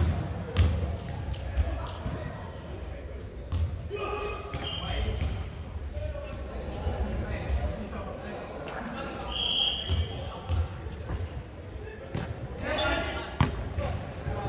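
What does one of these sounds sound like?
A volleyball is hit with sharp slaps, echoing in a large hall.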